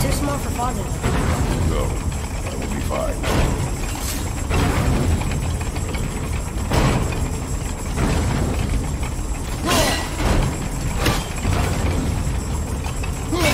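Huge metal gears grind and rumble as they turn.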